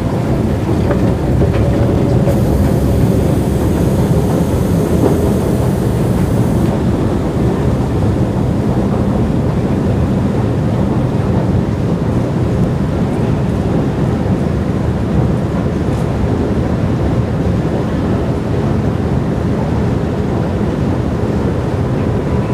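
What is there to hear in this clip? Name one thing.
An escalator hums and rumbles as it carries riders down in a large echoing underground hall.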